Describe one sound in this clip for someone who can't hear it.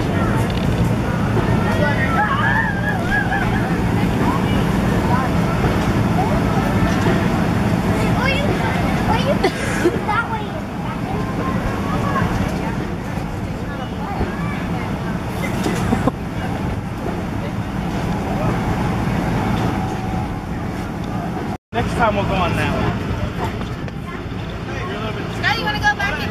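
Young children chatter and call out nearby outdoors.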